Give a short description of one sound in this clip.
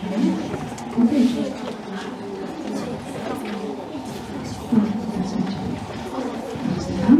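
A crowd of young people chatters nearby.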